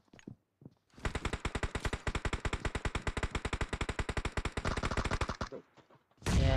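Rapid automatic gunfire rattles nearby.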